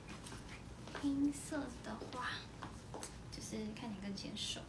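A young woman speaks close by, calmly.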